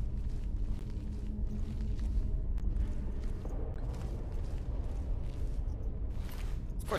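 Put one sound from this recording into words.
A low, steady rumbling drone echoes as if in a cavern.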